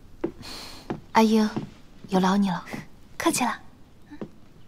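A young woman speaks gently.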